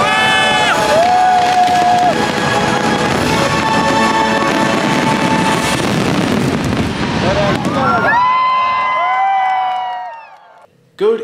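Fireworks boom and crackle loudly outdoors.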